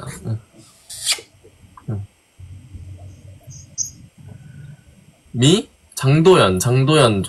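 A young woman talks with animation over an online call.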